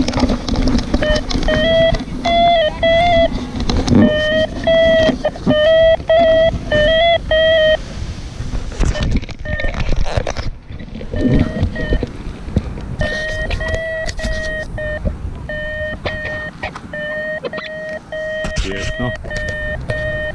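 An electronic device beeps in fast repeating tones.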